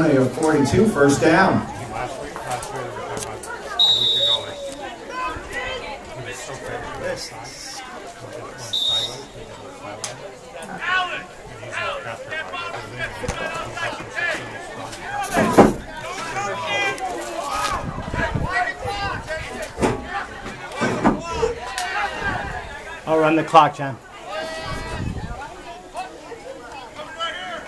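Boys and men talk and call out nearby outdoors.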